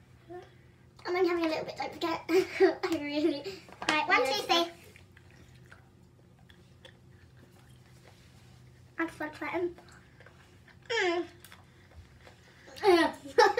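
Two young girls talk and laugh close by.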